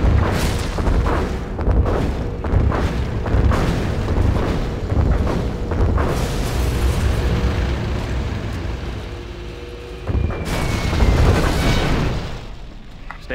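Explosions boom in a strategy game.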